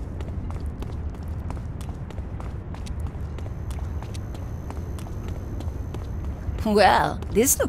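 Quick footsteps run over pavement.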